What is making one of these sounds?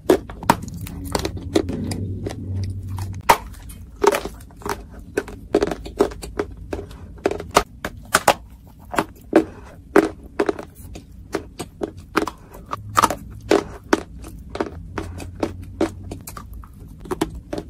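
A young woman chews clay with wet, gritty crunches up close.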